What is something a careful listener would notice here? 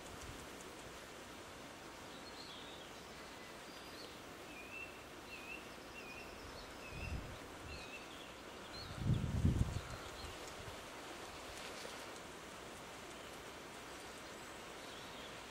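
Beavers chew on plant stems at the water's edge.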